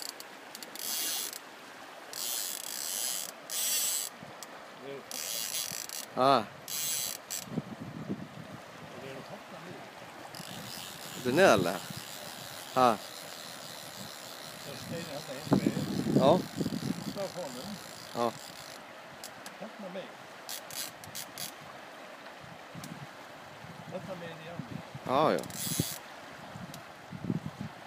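A river flows and gurgles steadily.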